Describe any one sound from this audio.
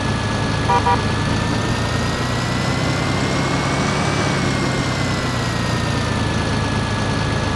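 A diesel tractor engine revs up as the tractor pulls away, then winds back down.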